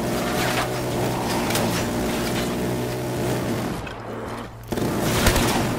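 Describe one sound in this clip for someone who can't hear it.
A heavy gun fires a loud, roaring, rapid stream of shots.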